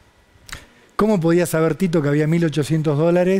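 A younger man speaks with animation into a microphone.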